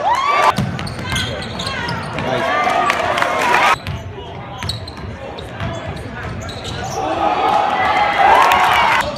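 A crowd murmurs and chatters in an echoing gym.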